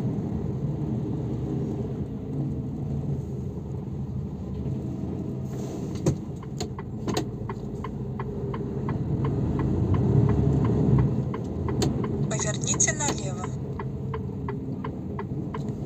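A bus engine rumbles steadily from inside.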